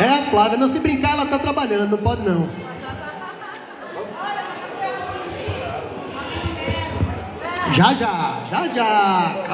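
A man sings into a microphone, close by.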